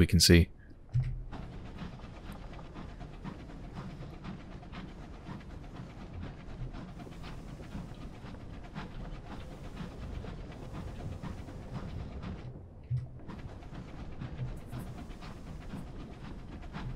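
A submarine engine hums low and steady underwater.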